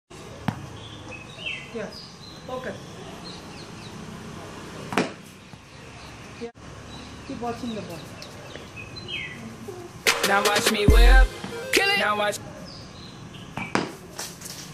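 A bat knocks a ball with a sharp crack.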